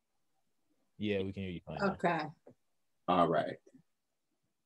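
A young man speaks calmly over an online call.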